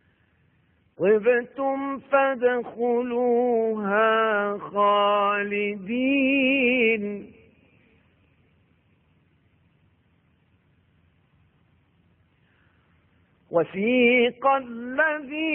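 A middle-aged man recites in a long, melodic chant through a microphone, with pauses between phrases.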